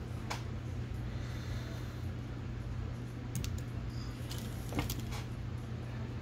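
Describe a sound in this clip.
Small tools click and tap as they are handled.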